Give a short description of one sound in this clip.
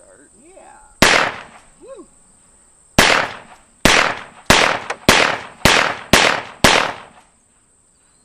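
A handgun fires a rapid string of loud shots outdoors.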